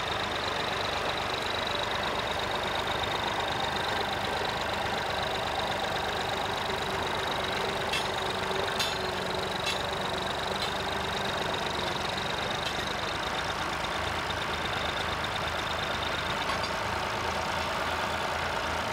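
A plough scrapes and turns the soil.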